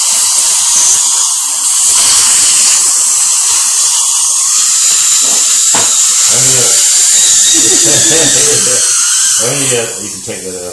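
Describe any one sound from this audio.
A dental suction tube hisses loudly and steadily.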